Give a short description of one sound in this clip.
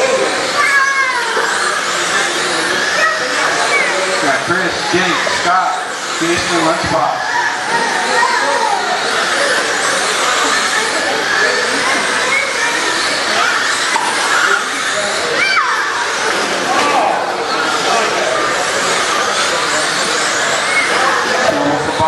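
Tyres of model cars skid and scrape on loose dirt.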